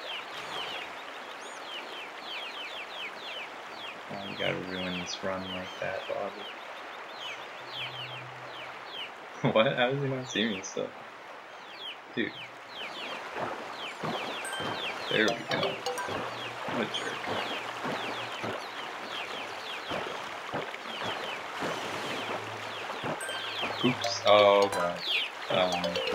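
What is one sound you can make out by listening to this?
Water splashes steadily as a kayak paddle strokes through it.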